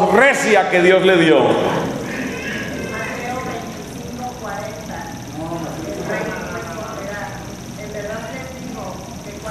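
A man speaks calmly into a microphone, heard through a loudspeaker in a hall.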